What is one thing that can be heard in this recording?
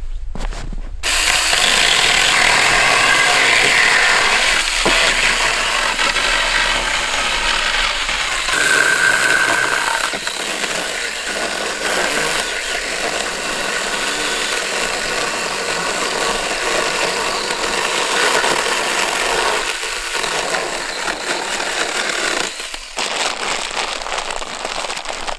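A power saw whines loudly as it cuts through wood.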